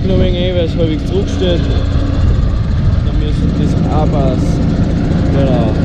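A mower whirs as it cuts through grass.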